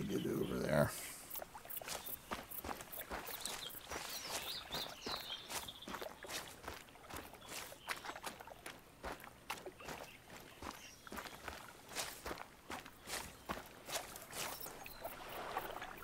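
Footsteps crunch steadily on soft ground.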